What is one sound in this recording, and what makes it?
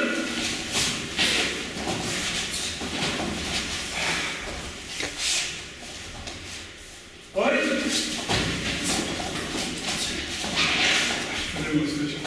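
Bare feet thump and shuffle on mats as people kick.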